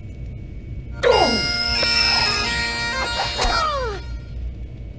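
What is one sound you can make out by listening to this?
Pipes play a short, shrill tune.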